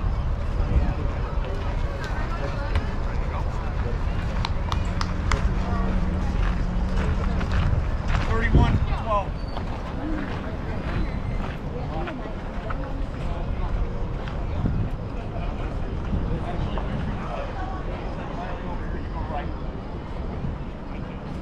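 Young girls call out to each other from a distance in an open field.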